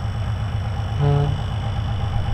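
A locomotive horn sounds a short blast.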